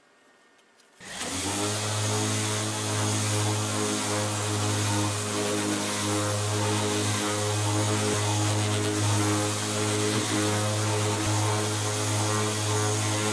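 An electric orbital sander whirs loudly and steadily against wood.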